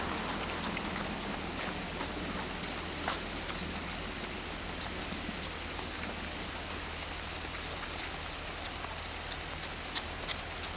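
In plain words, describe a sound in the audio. Many running shoes patter on pavement.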